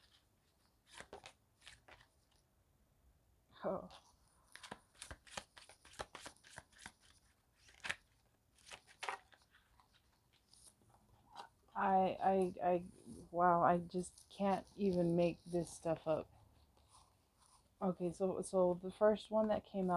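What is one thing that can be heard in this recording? Paper cards slide and tap onto a wooden table.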